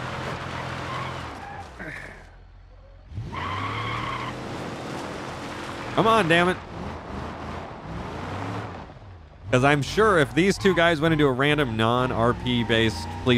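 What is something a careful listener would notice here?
A car engine hums and revs as the car drives over rough ground.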